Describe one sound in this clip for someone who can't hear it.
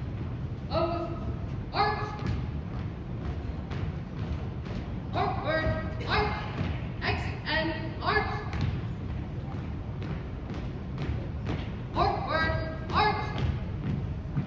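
A young man shouts marching commands loudly in a large echoing hall.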